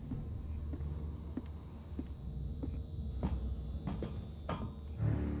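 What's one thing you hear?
Footsteps clank on a metal grate floor at a steady walking pace.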